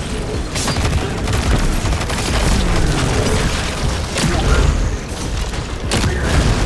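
Blasts boom and rumble deeply.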